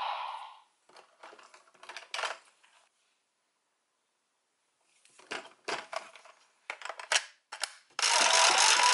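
Plastic toy parts click and clack as they are handled.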